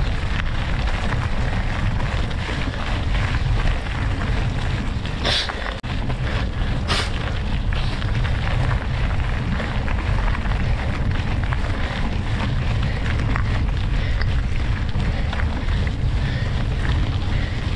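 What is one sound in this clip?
Wind rumbles and buffets against the microphone.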